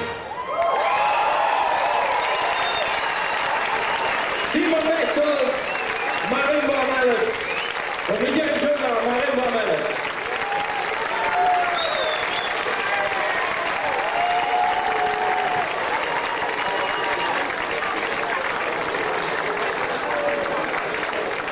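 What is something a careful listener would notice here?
A big band plays lively music outdoors through loudspeakers.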